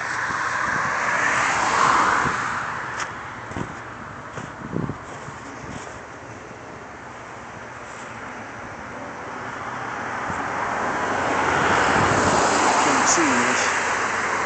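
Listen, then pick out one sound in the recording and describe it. Wind blows outdoors, rising and falling.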